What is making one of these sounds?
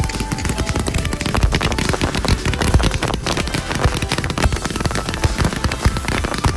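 Fireworks boom in deep thuds.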